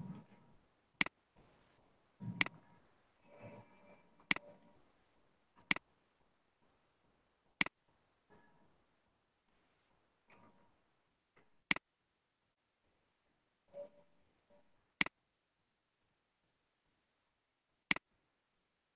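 A computer mouse clicks sharply now and then.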